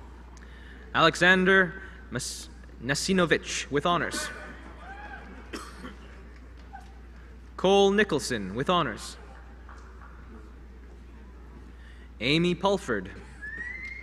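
A young man reads out names through a loudspeaker in a large hall.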